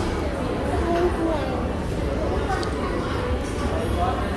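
A plastic spoon scrapes and clinks in a plastic cup.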